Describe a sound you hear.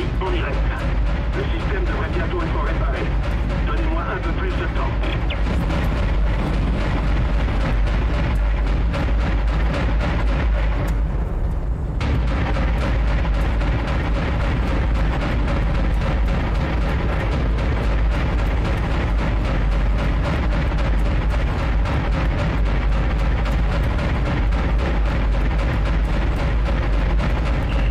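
Laser turrets fire in rapid bursts.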